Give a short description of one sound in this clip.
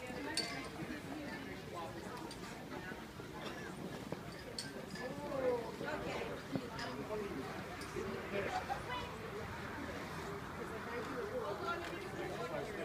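A crowd of men and women chatter in the background outdoors.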